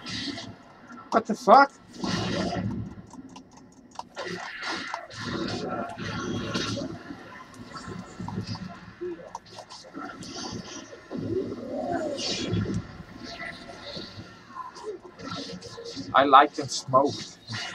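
Magic blasts boom in a fight.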